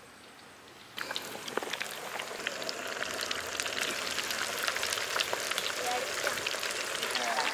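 Hot oil sizzles and bubbles loudly in a pan.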